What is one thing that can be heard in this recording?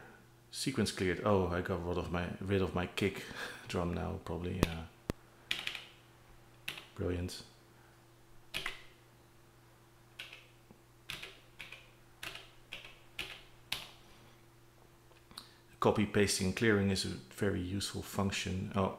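Plastic buttons click softly under fingers.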